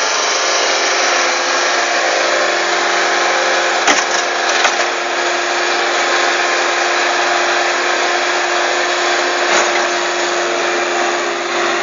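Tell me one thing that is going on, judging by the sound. A skid steer loader's engine roars steadily close by.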